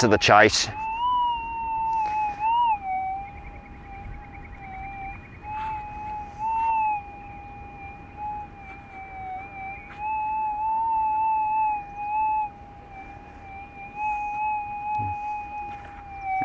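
A metal detector sounds a steady, high beeping tone that wavers slightly in pitch.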